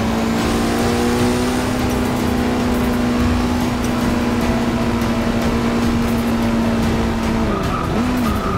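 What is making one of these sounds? A racing car engine holds a steady high whine.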